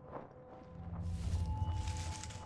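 Leafy bushes rustle as someone pushes through them.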